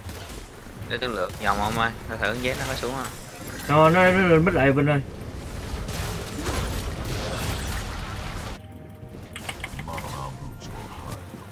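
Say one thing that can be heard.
Magic spells crackle and clash in a fight.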